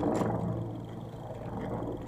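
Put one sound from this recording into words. Footsteps tap on a paved street outdoors.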